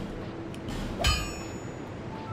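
A short metallic chime rings out.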